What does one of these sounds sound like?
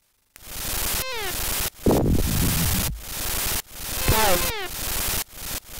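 Short falling electronic bleeps sound as a sword swings.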